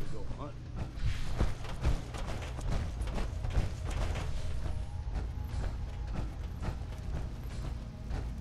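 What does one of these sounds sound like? Heavy metal footsteps clank and thud on a hard floor.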